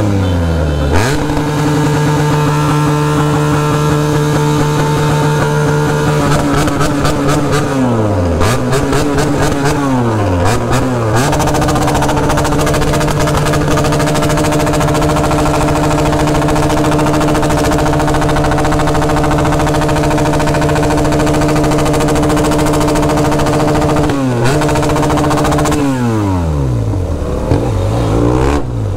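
A motorcycle engine roars close by, revving up and down.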